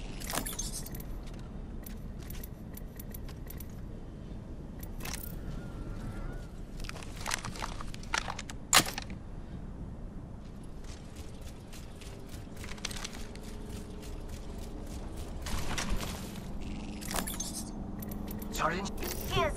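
Items click and clatter as they are picked up.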